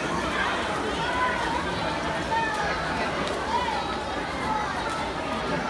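Swimmers splash through the water.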